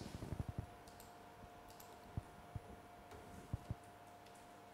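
Computer keys click and tap softly.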